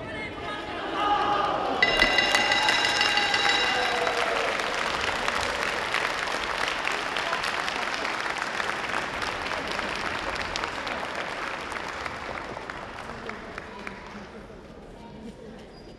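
A crowd claps and cheers in a large echoing hall.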